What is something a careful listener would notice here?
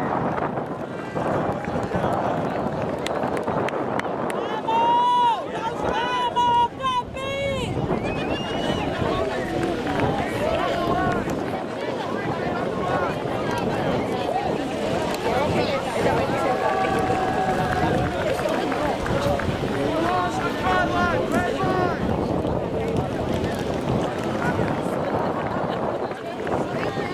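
Young men shout and call out to one another outdoors.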